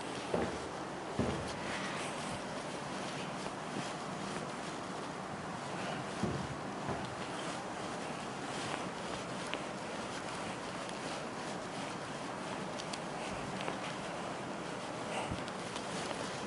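A felt eraser rubs across a whiteboard with a soft, steady scrubbing.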